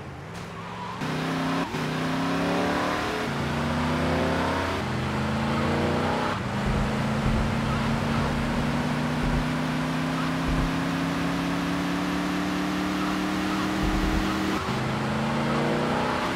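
A car engine revs up and changes gear as it speeds along.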